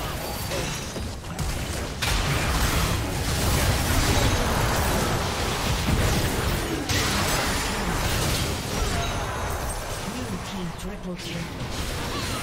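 Magic blasts and weapon strikes clash rapidly in a busy battle.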